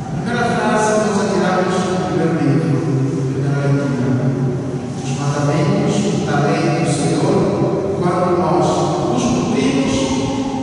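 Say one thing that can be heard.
An adult man speaks in a sung tone in a large echoing hall.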